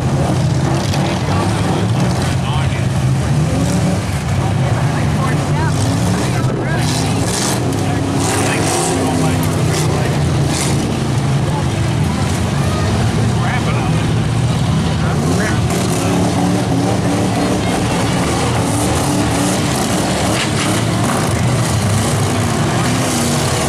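Car engines rumble and rev loudly outdoors.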